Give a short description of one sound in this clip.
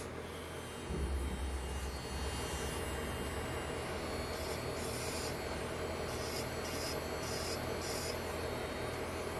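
An electric nail drill whirs steadily.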